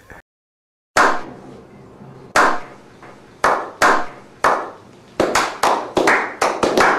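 Several men clap their hands, slowly at first and then faster.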